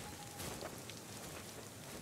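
A fire crackles close by.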